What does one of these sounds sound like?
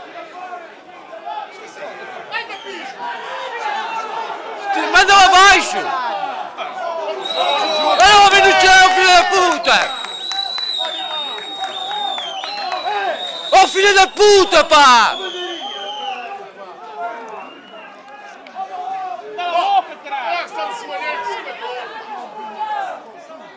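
A crowd of young spectators chants and sings loudly outdoors.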